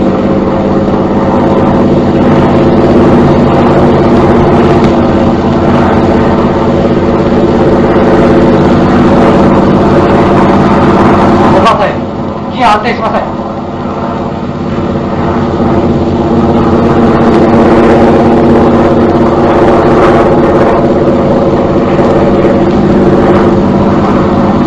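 An aircraft engine drones steadily overhead.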